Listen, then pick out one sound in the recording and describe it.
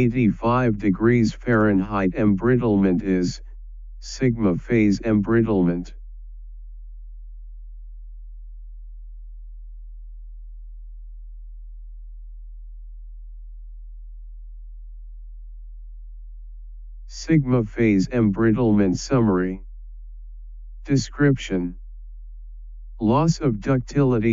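A man narrates calmly and steadily through a microphone, with long pauses.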